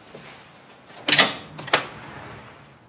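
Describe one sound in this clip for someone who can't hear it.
A door handle clicks as it is turned.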